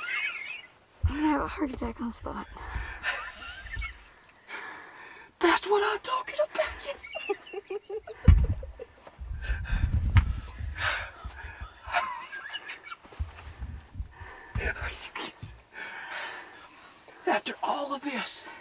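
A boy blows into his cupped hands close by, making short squeaky calls.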